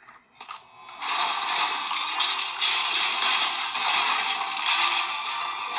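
Loud game music plays from a phone's speaker.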